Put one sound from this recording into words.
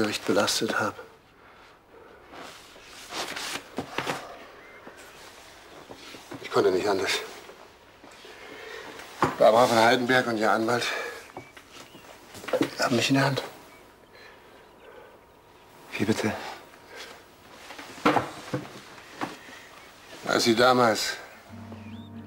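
An older man speaks calmly and seriously nearby.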